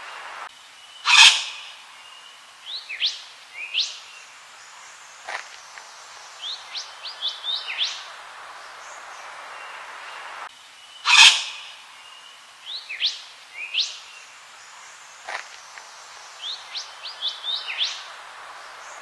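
A bird gives a loud harsh squawk followed by short sharp chirps, over and over.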